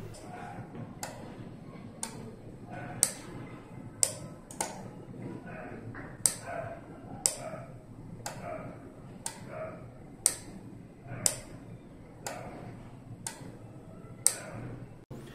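A relay clicks sharply at a regular pace.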